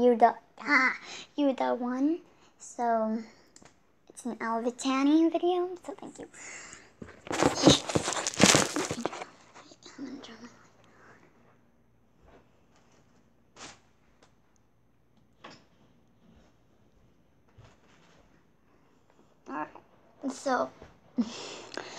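A young girl speaks with animation close to the microphone.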